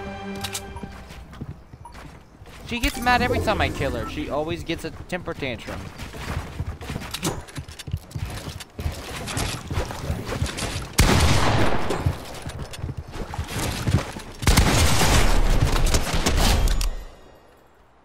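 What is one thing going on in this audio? Rapid gunshots crack and echo.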